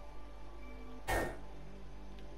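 A short electronic buzz sounds as a puzzle attempt fails.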